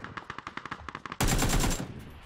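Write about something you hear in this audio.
Rapid gunfire rattles in short bursts.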